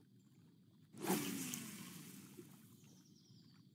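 A fishing line whooshes out on a cast.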